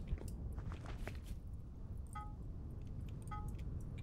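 Fire crackles in a forge.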